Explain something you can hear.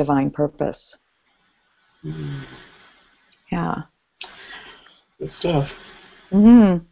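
An older woman speaks calmly in short phrases through a headset microphone over an online call.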